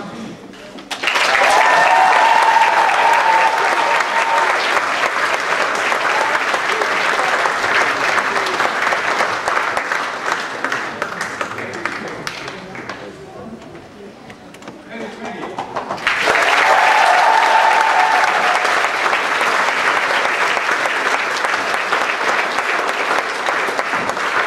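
A crowd of children claps and cheers loudly.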